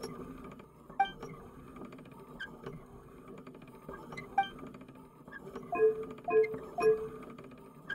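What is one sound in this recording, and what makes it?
Short bright chimes ring out several times as choices are made.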